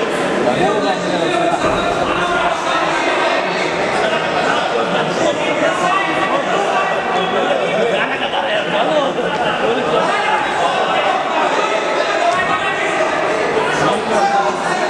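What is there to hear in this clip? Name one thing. A crowd shouts and cheers in a large echoing hall.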